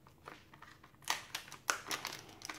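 A plastic wrapper crinkles and rustles close by.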